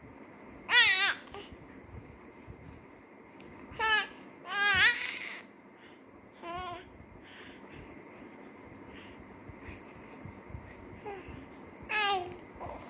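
A baby squeals and coos up close in short, high-pitched bursts.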